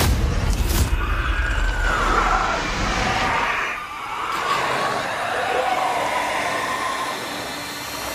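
A creature shrieks and screeches in pain.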